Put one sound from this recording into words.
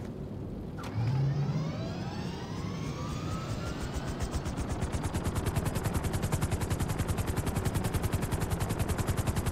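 A helicopter engine starts up and its rotor chops faster and faster.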